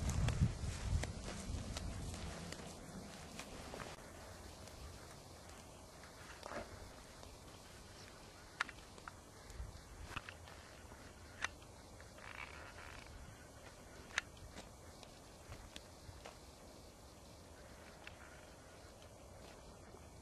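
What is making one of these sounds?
Footsteps crunch through dry grass and dirt.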